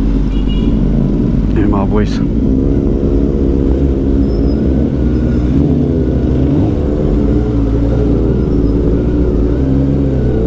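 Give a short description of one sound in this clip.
A motorcycle engine hums steadily, rising and falling in pitch as the rider speeds along.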